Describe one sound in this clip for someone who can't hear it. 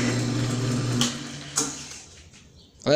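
A lathe motor winds down and stops.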